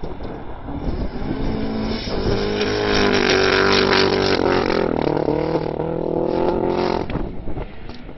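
A rally car engine roars and revs as the car speeds past nearby.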